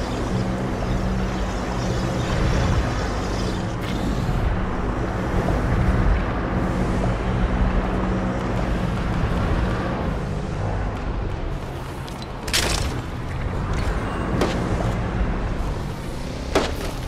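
Footsteps patter quickly on grass and pavement.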